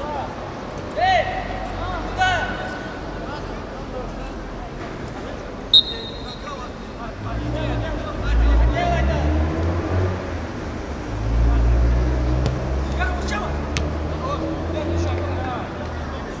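Young men shout across an open pitch in the distance.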